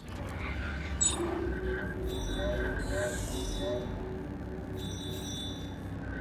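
Soft electronic blips chime.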